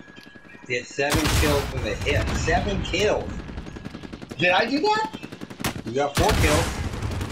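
A rifle fires sharp shots.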